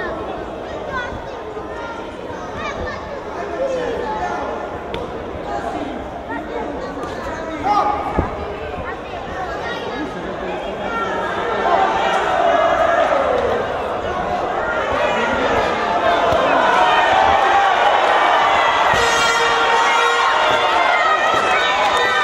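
A crowd cheers and shouts in a large echoing hall, growing louder.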